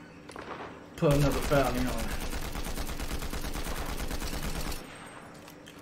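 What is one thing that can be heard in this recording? A game rifle fires in rapid bursts.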